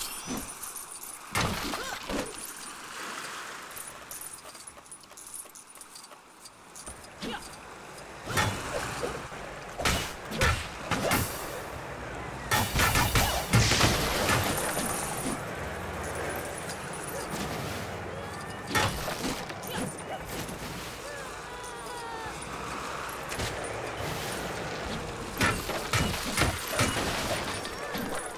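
Game sound effects clatter and burst as bricks break apart.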